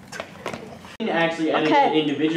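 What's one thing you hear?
A boy talks animatedly close by.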